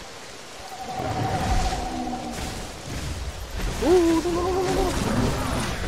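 A large creature lets out shrill, warbling calls.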